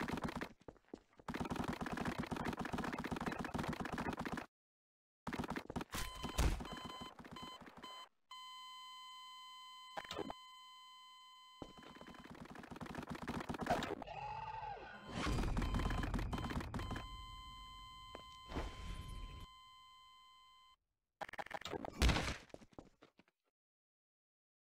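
A ray gun fires a buzzing energy beam.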